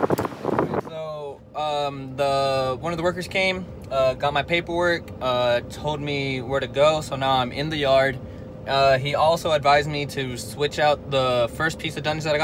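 A young man talks calmly and close up.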